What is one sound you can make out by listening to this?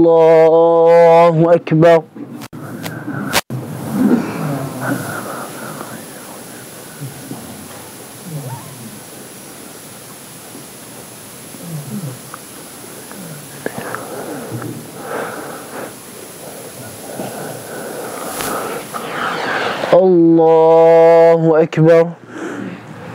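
A man chants loudly through a microphone in an echoing room.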